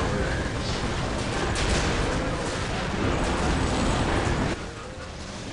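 Gunfire rattles in a noisy battle.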